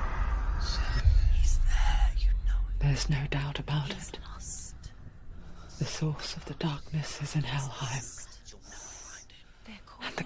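A young woman gasps and breathes heavily in alarm.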